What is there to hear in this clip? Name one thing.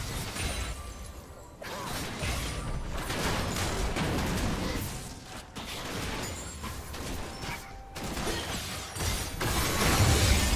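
Magical blasts and clashing game effects crackle and burst in quick succession.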